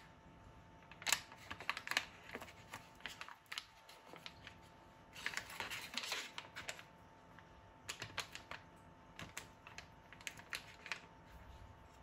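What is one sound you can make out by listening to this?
A knife cuts through butter and taps on foil.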